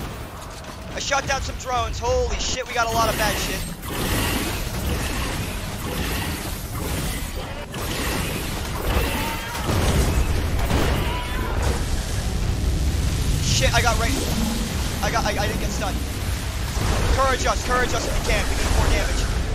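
Laser beams zap and whine.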